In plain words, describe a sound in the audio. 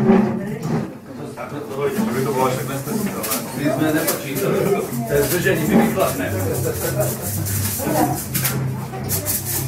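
Musicians play a lively tune nearby.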